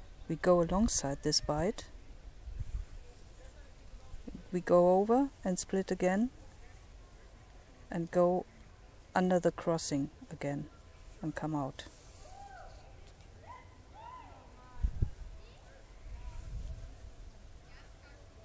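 A cord rustles softly as it is pulled through a knot.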